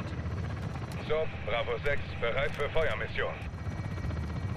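A man talks briefly into a close microphone.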